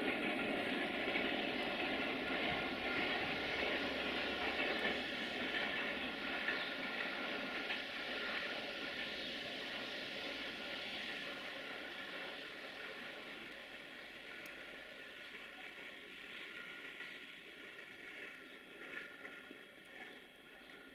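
A train rumbles away in the distance and slowly fades.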